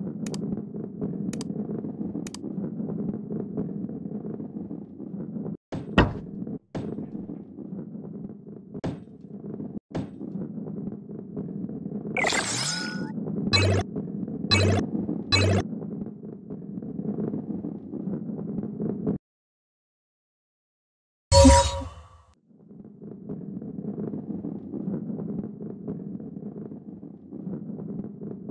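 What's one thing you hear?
A heavy ball rolls along a wooden track with a low, steady rumble.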